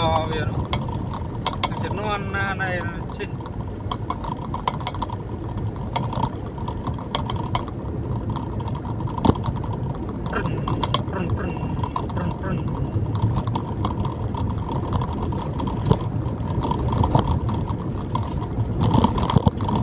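Raindrops tap on a windscreen.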